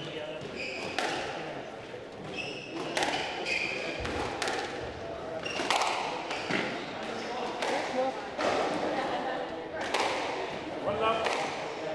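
A squash ball smacks sharply off rackets and walls, echoing in a hard-walled court.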